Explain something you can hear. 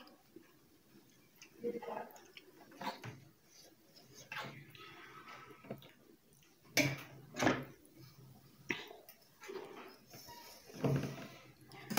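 A fork scrapes and clinks against a metal bowl.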